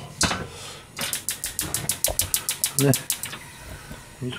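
A gas stove's igniter clicks rapidly.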